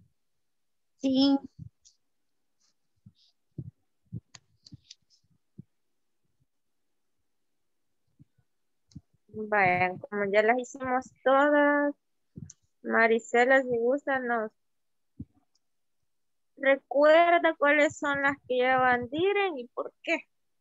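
A woman speaks calmly, in short phrases, through an online call.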